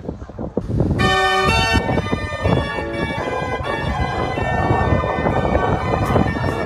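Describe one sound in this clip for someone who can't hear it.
A street organ plays a lively tune outdoors.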